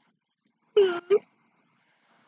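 A young woman laughs briefly close by.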